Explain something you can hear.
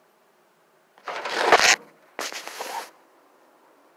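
Wood shavings rustle and crunch loudly up close.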